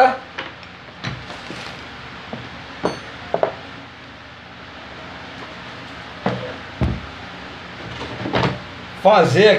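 Metal parts clunk and knock as a man handles them.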